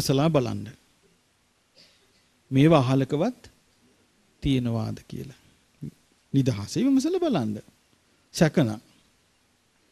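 A middle-aged man speaks calmly into a microphone, in short phrases with pauses.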